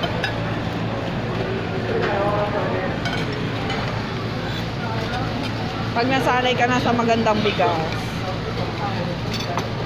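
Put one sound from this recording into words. Metal cutlery clinks against a plate.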